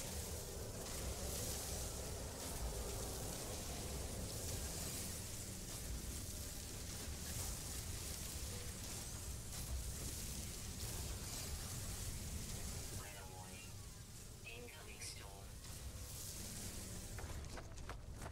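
A laser beam hums and crackles steadily.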